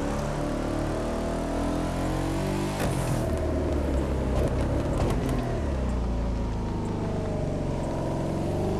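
A car engine roars steadily, dropping in pitch as it shifts and then rising again.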